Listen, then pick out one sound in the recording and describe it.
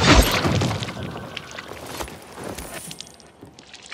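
A blade hacks wetly into a body.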